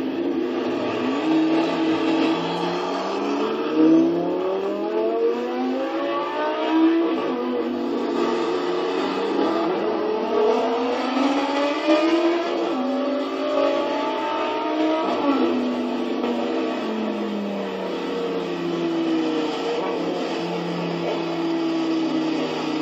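A sports car engine revs hard, rising in pitch and dropping with each gear change.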